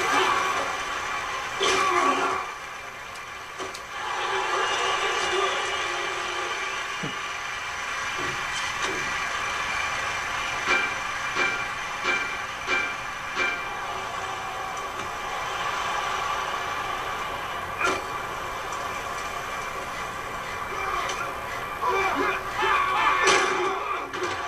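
Football players crash together in a tackle.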